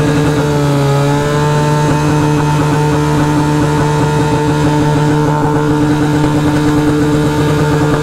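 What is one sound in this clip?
A motorcycle engine hums steadily up close, its pitch changing briefly.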